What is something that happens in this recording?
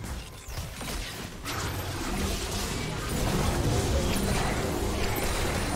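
Game spell effects burst and crackle in quick succession.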